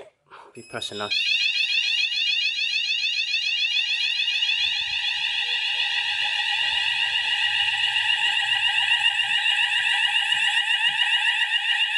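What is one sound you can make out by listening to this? A fire alarm sounder shrills loudly and steadily.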